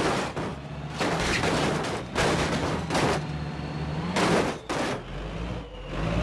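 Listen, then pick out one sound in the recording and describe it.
Bus tyres thump and scrape over a kerb.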